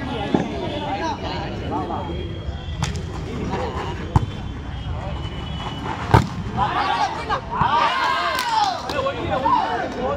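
A crowd of spectators chatters and shouts outdoors.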